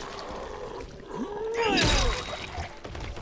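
A man groans and snarls close by.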